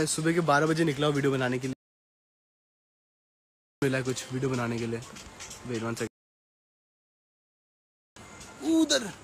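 A young man talks into a phone microphone.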